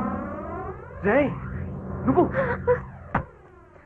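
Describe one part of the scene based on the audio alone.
A young man shouts angrily.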